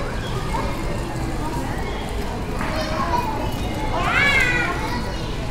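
People chat in the distance outdoors.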